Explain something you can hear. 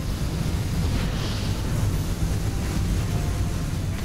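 A blast booms as a ship is hit.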